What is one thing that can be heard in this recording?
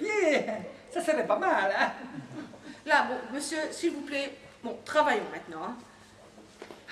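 A middle-aged woman speaks with animation, a little distant.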